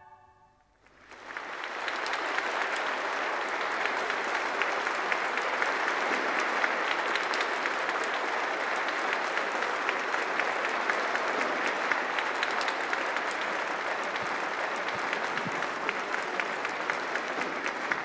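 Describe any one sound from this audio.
A large audience applauds loudly in a big echoing hall.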